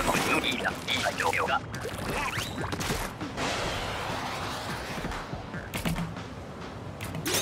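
Thick liquid splatters and splashes in bursts.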